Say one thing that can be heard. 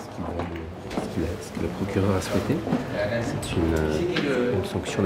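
A man speaks quietly and calmly close by.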